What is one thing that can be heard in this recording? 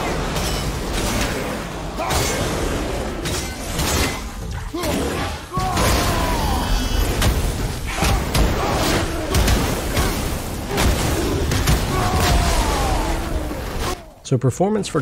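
Heavy blows thud and clang in a fight.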